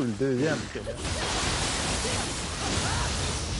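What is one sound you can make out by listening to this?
A burst of sparks crackles and hisses.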